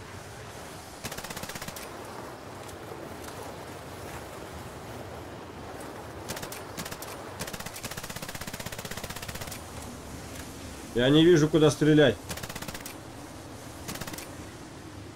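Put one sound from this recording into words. Gunfire rattles in short, rapid bursts.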